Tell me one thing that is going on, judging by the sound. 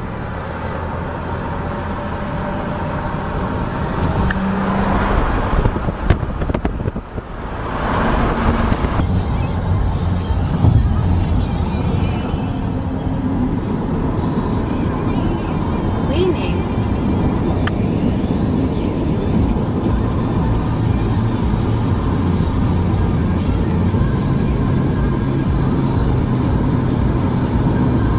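A car drives along a road, its engine humming and tyres rolling steadily.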